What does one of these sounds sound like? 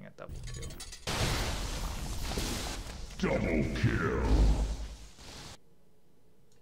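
Weapons fire and explosions rumble loudly in a battle.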